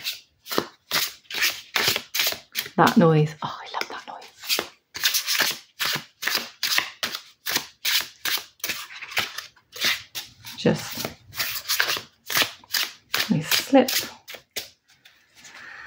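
Playing cards riffle and flick quickly as a deck is shuffled by hand.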